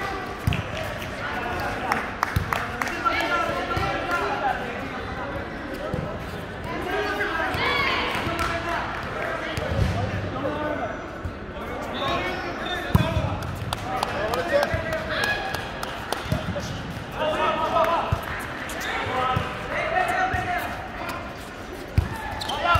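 A volleyball is struck by hand with a sharp slap.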